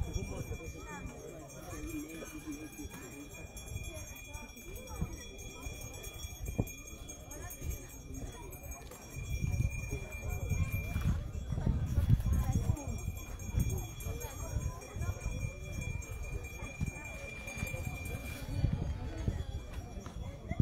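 A crowd of men and women murmurs quietly outdoors.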